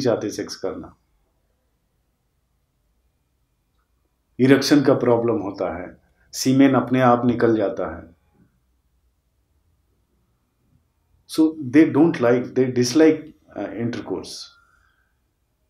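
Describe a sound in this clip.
A middle-aged man speaks calmly and close by, in short bursts with pauses.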